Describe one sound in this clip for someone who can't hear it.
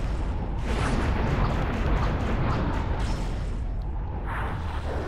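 A deep rumbling roar of energy blasts crackles.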